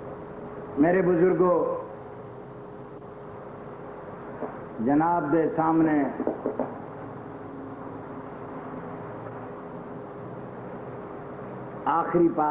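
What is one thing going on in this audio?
An elderly man speaks into a microphone in short, chanted phrases with long pauses.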